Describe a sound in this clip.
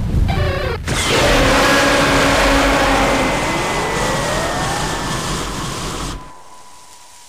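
Electricity crackles and buzzes loudly, then cuts off.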